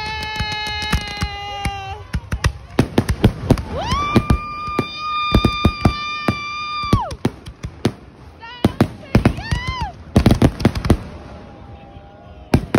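Fireworks bang and crackle loudly in rapid bursts.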